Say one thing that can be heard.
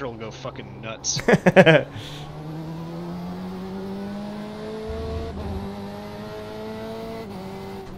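A racing car engine roars and climbs in pitch through the gears.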